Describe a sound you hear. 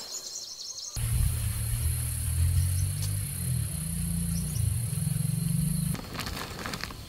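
Wind blows hard over the microphone outdoors, rustling leaves.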